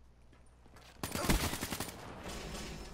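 Rapid gunfire rattles in a loud burst.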